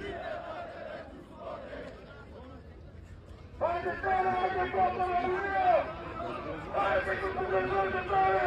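A large crowd of men chants loudly in unison outdoors.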